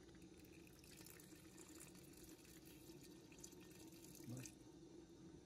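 Water pours into a metal pot.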